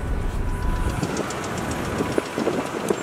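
Cars idle nearby in traffic outdoors.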